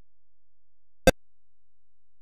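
A short electronic click sounds once.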